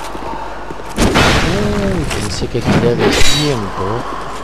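A sword swings and strikes with loud heavy blows.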